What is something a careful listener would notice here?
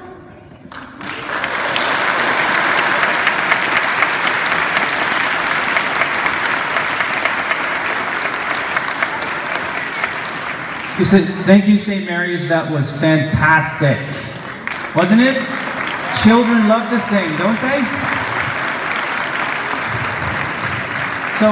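A crowd claps and applauds.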